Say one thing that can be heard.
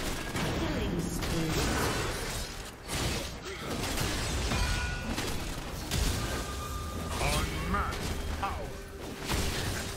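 Game spell effects whoosh and clash in a fast fight.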